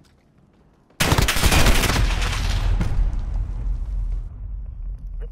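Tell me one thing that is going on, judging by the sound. Gunshots ring out in a loud, heavy burst.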